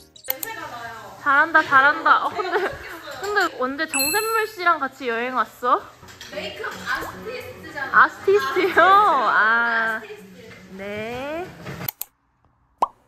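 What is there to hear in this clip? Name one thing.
Two young women talk and laugh together nearby.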